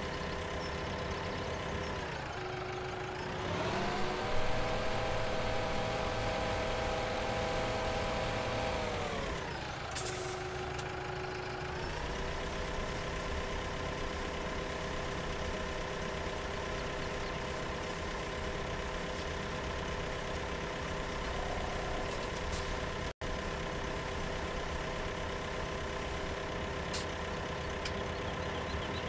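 A tractor engine drones steadily, its pitch rising and falling as it speeds up and slows down.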